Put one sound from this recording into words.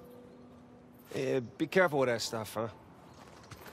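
A second man speaks with mild warning in his voice.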